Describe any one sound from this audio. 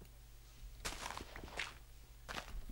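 A shovel digs into loose dirt with short scraping crunches.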